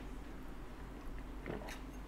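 A woman sips water from a glass.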